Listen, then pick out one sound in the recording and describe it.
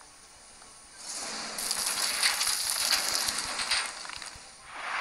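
Gravel pours out of a dump truck with a rushing hiss.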